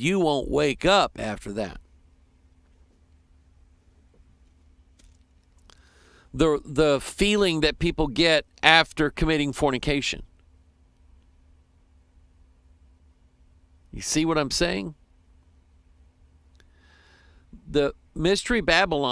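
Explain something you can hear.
A middle-aged man talks with animation into a close microphone, pausing now and then.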